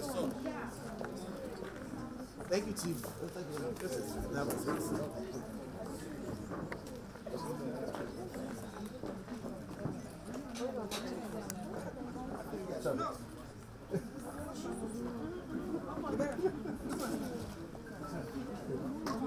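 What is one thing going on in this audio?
A crowd of men and women chatter and talk nearby outdoors.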